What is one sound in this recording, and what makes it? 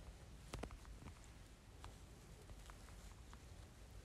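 Phone keyboard keys click softly as someone types.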